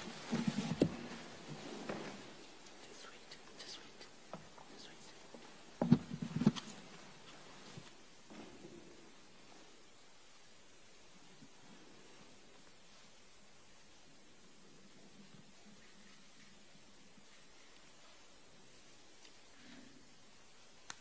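A woman speaks quietly into a microphone.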